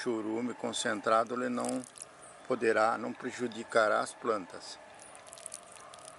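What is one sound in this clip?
Water pours from a jug onto soil.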